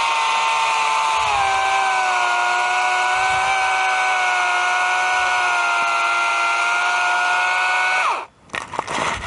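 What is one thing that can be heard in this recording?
A small petrol engine drones loudly and steadily close by, then cuts off.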